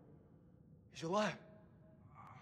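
A young man exclaims in surprise.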